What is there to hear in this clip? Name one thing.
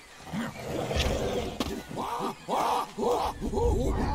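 Apes screech and shriek as they fight.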